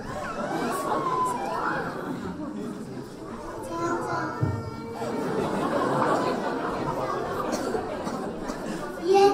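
Young children chatter and call out.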